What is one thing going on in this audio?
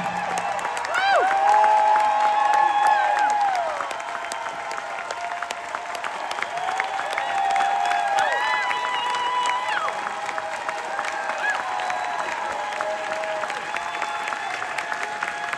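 Audience members whistle and whoop.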